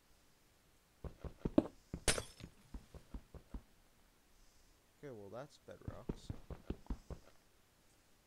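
A pickaxe chips at stone in quick knocks.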